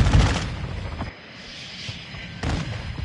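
A jet roars overhead.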